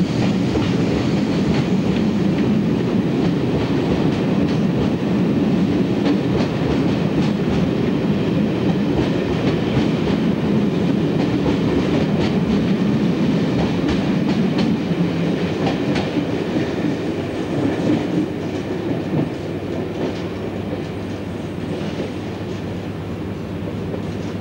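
A diesel locomotive rumbles loudly as it pulls a train past.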